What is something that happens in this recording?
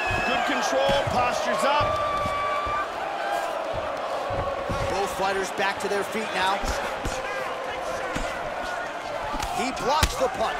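Punches thud against a body.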